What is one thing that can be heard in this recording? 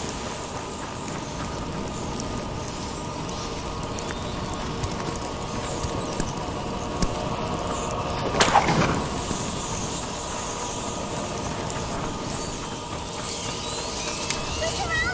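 Fires crackle and roar steadily.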